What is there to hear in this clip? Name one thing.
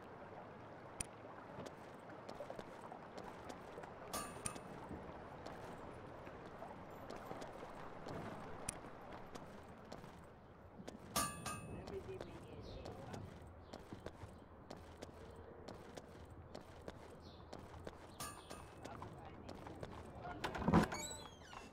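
Footsteps patter quickly on dirt.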